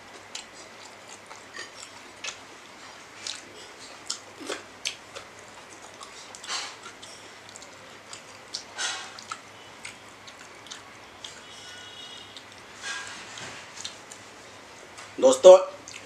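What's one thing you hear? A man chews rice close to a microphone.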